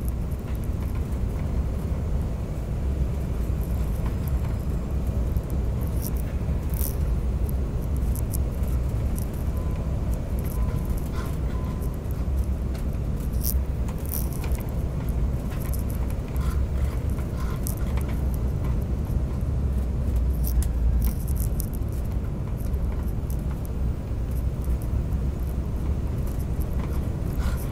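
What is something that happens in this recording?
An airliner's engines rumble steadily, heard from inside the cabin.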